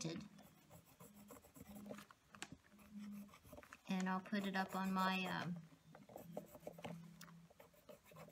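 A brush dabs and strokes softly on paper.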